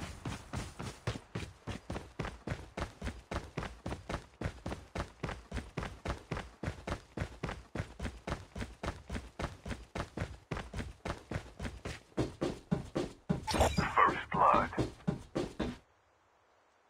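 Footsteps thud quickly and steadily on hard ground.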